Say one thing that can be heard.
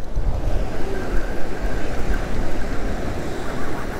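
A fishing reel whirs as its handle is cranked.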